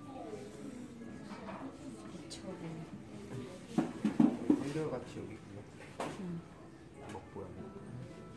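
Young women chat quietly in the background.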